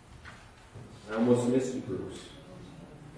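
A man speaks aloud in a large echoing room.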